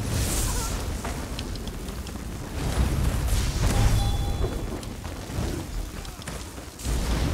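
Sharp magic impacts strike again and again.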